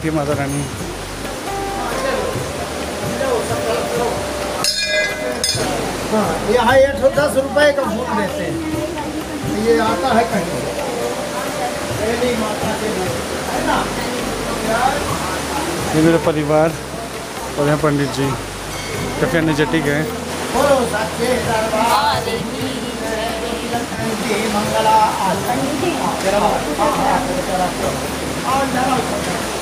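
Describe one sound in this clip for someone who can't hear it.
Several people murmur and talk nearby.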